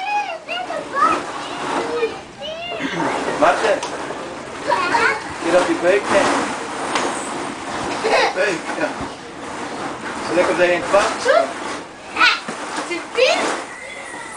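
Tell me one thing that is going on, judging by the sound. A young woman talks and coos playfully close by.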